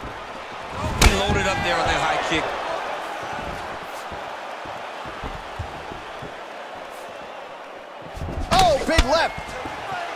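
A kick lands with a hard thud on a body.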